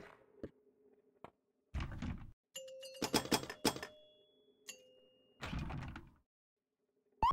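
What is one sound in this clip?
A pinball machine rings, chimes and clacks as a ball strikes bumpers and targets.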